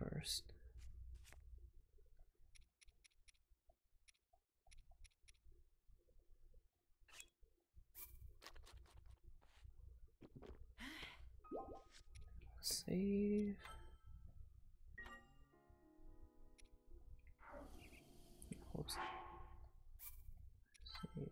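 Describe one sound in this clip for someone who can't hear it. Short electronic blips sound as menu choices are made.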